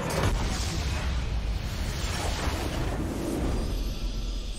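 Game battle sounds clash and rumble loudly.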